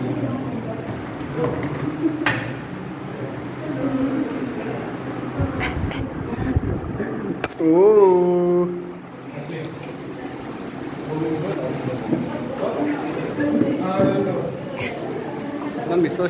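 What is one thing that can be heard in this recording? A group of young people chatter and talk over each other close by.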